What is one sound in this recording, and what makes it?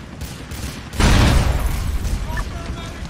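A car explodes with a loud boom.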